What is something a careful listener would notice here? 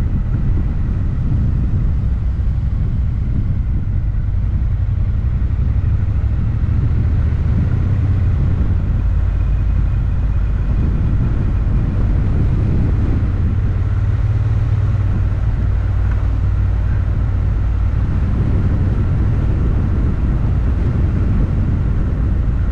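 A car engine hums steadily as the car drives along a country lane.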